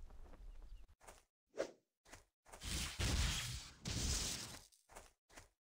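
Blades strike and swish in a fight.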